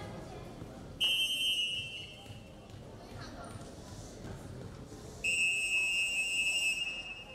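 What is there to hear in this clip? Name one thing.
A referee's whistle blows long and shrill.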